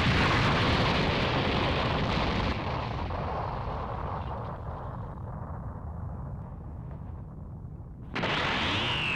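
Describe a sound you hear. A huge explosion roars and rumbles.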